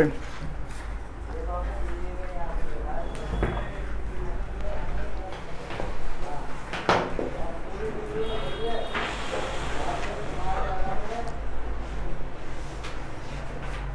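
A young man speaks calmly and steadily, close by.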